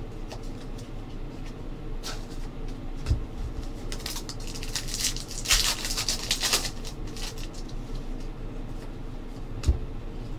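Trading cards flick and slide against each other in hands.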